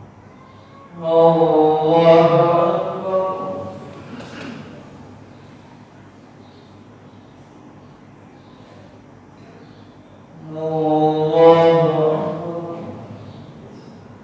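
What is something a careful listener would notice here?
A man chants a long, drawn-out call that echoes through a large hall.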